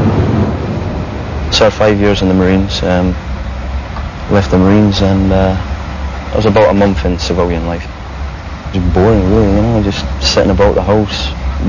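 A train rumbles low and steadily from inside a carriage.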